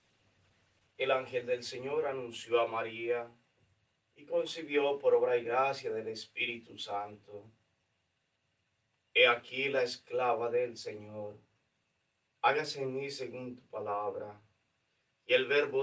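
A man speaks slowly and solemnly nearby.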